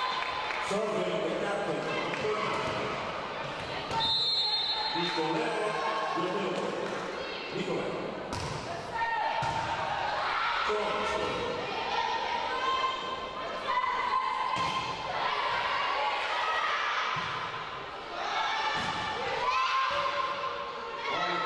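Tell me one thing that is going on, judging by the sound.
Players call out, their voices echoing in a large hall.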